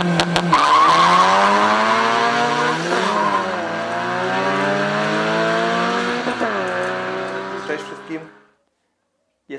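Two car engines roar loudly as the cars speed away.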